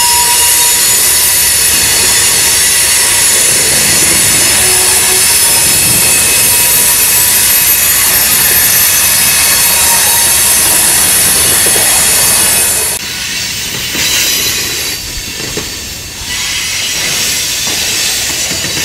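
A freight train rumbles past on the tracks.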